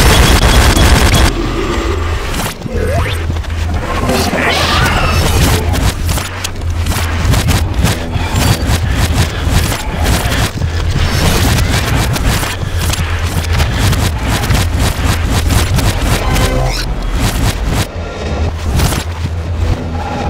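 Rapid gunfire bursts from a video game.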